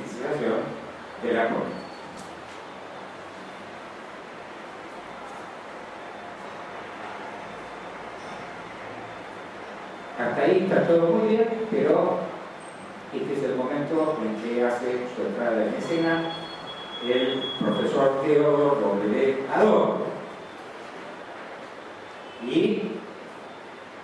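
An elderly man speaks calmly into a microphone over loudspeakers in an echoing room.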